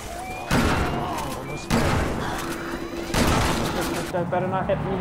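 Loud booms and rumbling roar out.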